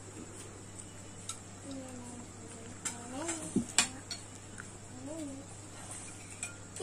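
Cutlery and plates clink.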